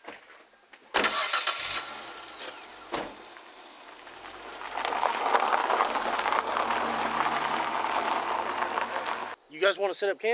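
A car drives off over gravel.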